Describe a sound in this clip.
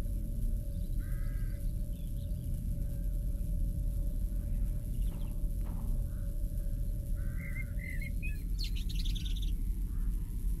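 Birds call now and then in the distance.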